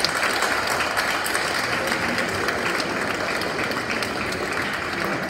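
A crowd of people chatter in a large echoing hall.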